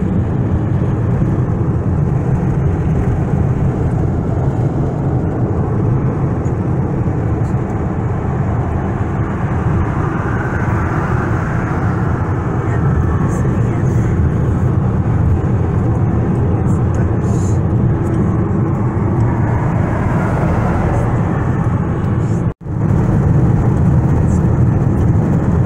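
Tyres roar steadily on a highway.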